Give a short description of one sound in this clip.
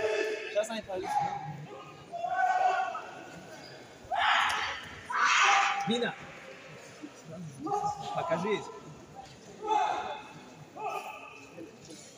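A crowd in a large echoing hall shouts and cheers.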